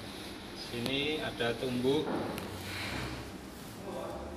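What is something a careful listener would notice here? Plastic sheeting rustles and crinkles as hands pull at it.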